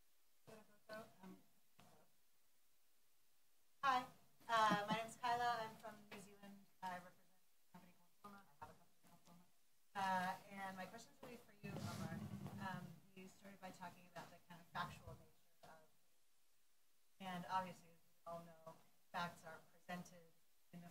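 A woman speaks calmly and at length through a microphone, with pauses between phrases.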